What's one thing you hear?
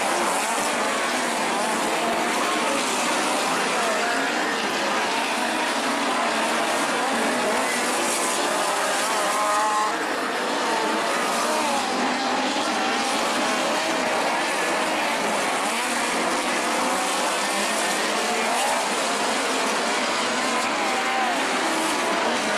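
A crowd of spectators chatters nearby.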